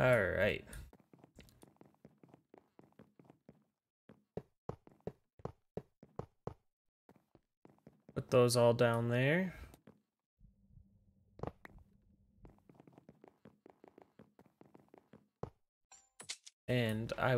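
Footsteps tap steadily on a hard wooden floor.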